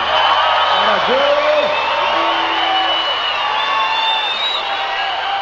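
A live band plays amplified music.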